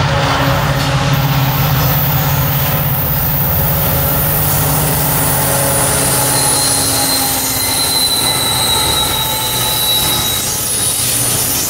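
Diesel freight locomotives rumble past.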